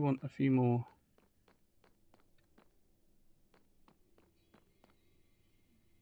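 Footsteps tap on stone at a steady pace.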